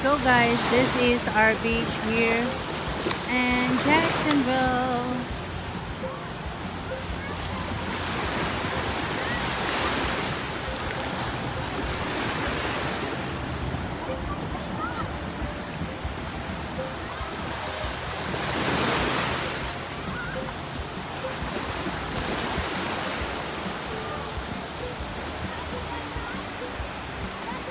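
Waves wash and break on the shore close by.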